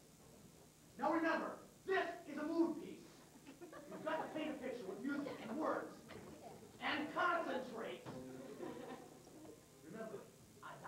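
Young performers speak lines loudly on a stage, heard from the audience.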